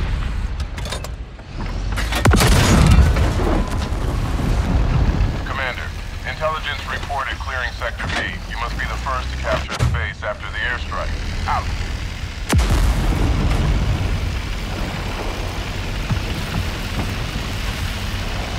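A tank engine rumbles and its tracks clatter.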